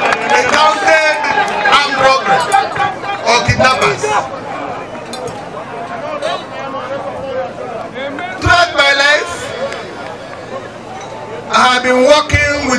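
An elderly man speaks forcefully into a microphone, heard through loudspeakers outdoors.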